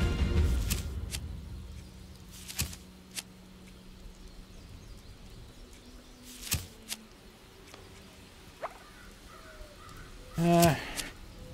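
Soft clicks and swishes sound as menu choices change.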